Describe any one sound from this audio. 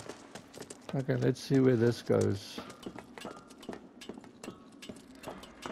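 Feet clank on metal ladder rungs.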